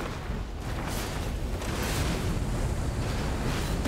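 A howling icy wind blasts.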